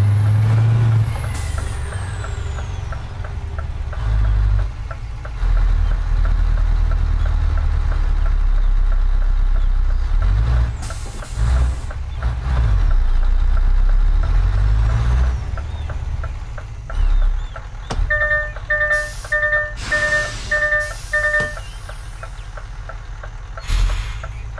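A truck engine rumbles low and steadily, rising and falling as it revs.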